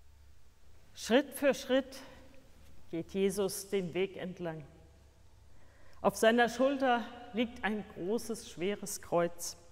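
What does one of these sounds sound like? A woman reads out calmly, heard close in an echoing room.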